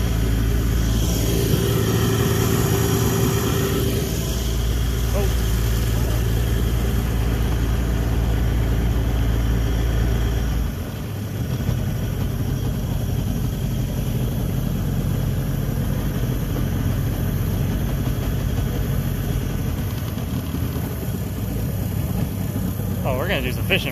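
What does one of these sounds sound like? An outboard motor drones as a small skiff runs at speed.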